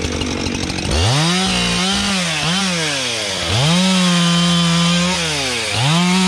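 A chainsaw cuts through a log.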